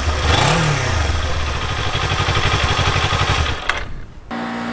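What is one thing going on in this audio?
A motorcycle engine idles and revs up close by.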